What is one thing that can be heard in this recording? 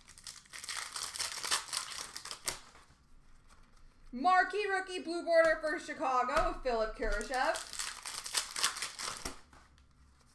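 Trading card packs rustle and crinkle as they are shuffled by hand.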